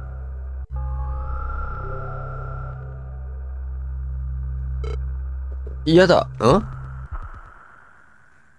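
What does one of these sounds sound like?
A magic spell crackles and hums with a shimmering tone.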